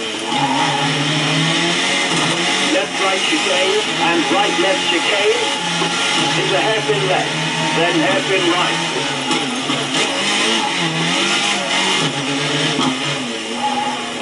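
A racing car engine roars and revs through a small loudspeaker.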